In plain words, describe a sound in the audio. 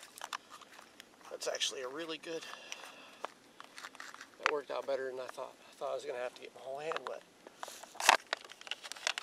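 A plastic bottle crinkles and clicks in a man's hands.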